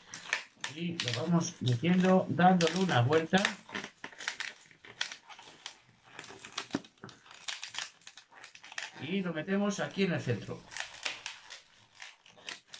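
Rubber balloons squeak and rub as they are twisted.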